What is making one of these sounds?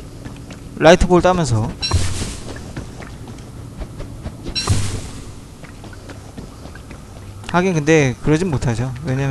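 Footsteps patter softly on the ground.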